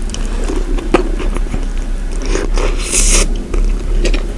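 A woman bites into a flaky croissant with crisp crunches close to a microphone.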